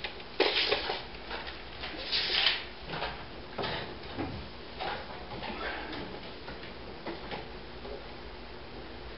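Wooden framing knocks and scrapes as it is worked overhead.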